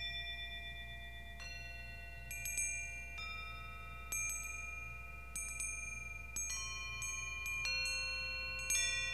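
Small bells and chimes are struck, ringing out in bright, lingering tones.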